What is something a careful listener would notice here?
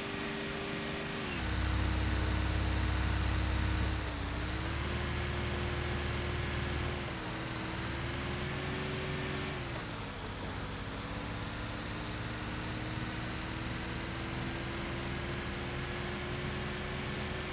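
A heavy truck engine roars and shifts gears as it speeds up.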